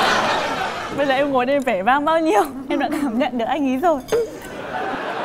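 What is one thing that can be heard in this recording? A young woman talks and laughs with animation.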